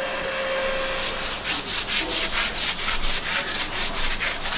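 A brush scrubs a wet floor in quick, repeated strokes.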